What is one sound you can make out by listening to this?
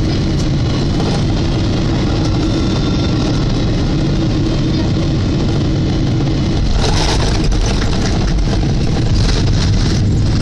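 A jet engine roars loudly and steadily close by.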